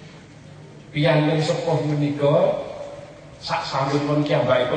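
A middle-aged man speaks loudly and with animation through a microphone and loudspeakers.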